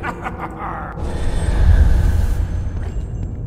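A swarm of butterflies flutters past with a soft rushing whoosh.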